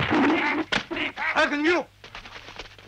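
A young man shouts urgently.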